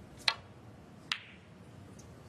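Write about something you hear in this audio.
Snooker balls click together.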